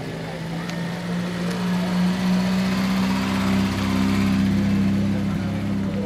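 An old car engine rumbles steadily as the car rolls slowly past.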